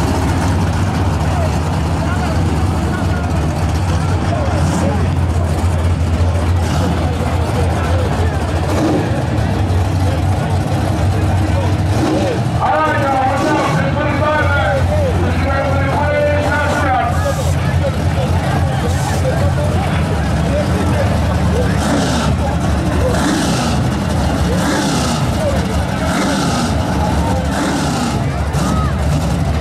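Car engines rumble low and steady nearby.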